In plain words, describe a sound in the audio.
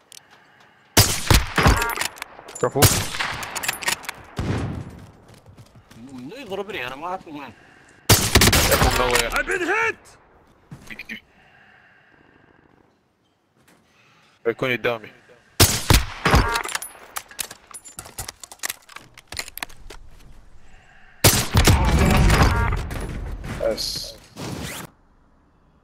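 A sniper rifle fires loud, sharp shots that echo away.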